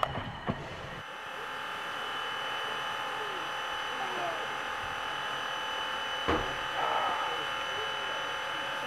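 A steam locomotive idles nearby with a soft, steady hiss.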